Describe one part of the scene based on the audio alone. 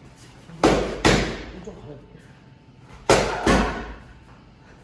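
Boxing gloves thud against padded mitts in pairs of quick punches.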